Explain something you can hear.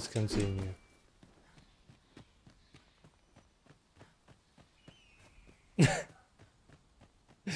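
Footsteps patter quickly on a dirt path.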